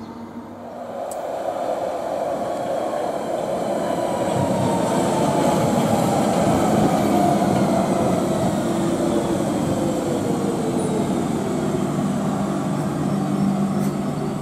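Another electric train arrives with a rising, then steady motor whine.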